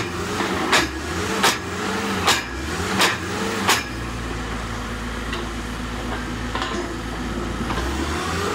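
A drilling rig engine runs with a steady low rumble.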